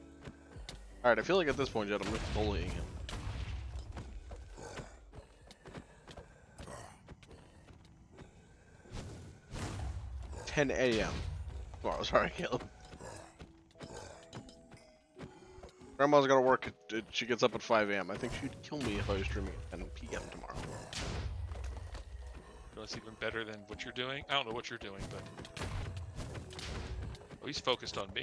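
A man talks with animation into a close microphone.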